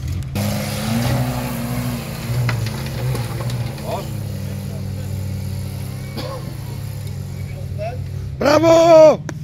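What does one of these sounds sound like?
An off-road vehicle's engine rumbles and revs as it climbs a dirt trail.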